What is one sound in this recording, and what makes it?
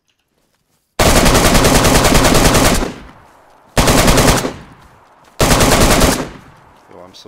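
Gunfire blasts in loud bursts.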